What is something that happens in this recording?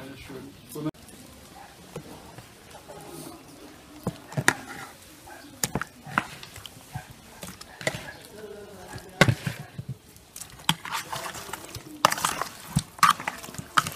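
Pieces of raw meat squelch and slap wetly into a bowl of liquid.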